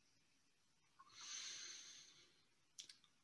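A young man breathes in deeply.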